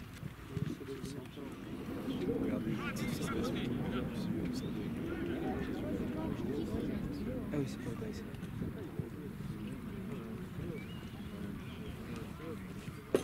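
Men call out faintly in the distance.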